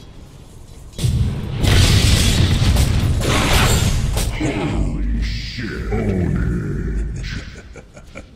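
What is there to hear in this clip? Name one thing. Battle sounds of clashing blows and bursting spells ring out.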